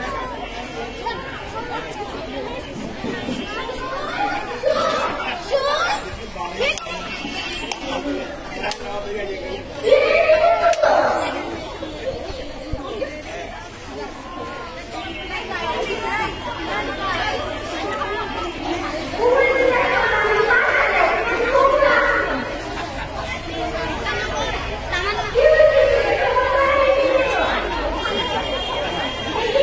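A young girl speaks into a microphone.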